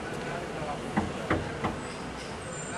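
A young boy taps on a window pane.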